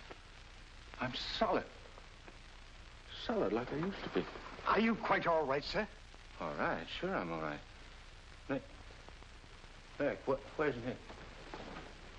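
A young man answers in a tense, anxious voice.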